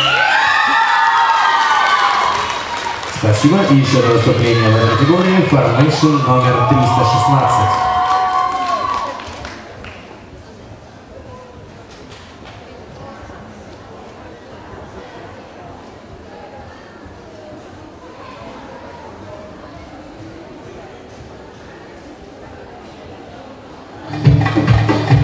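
Music plays loudly over loudspeakers in a large hall.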